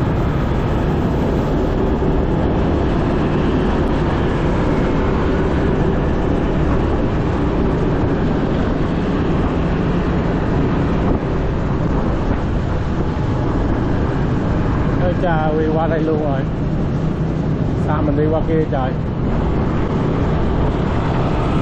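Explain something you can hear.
Wind roars loudly past a moving motorbike.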